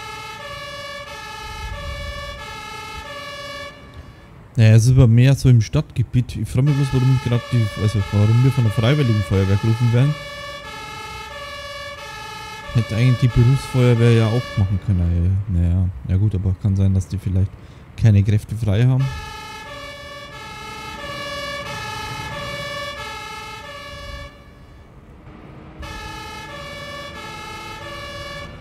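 A fire engine's two-tone siren wails steadily close by.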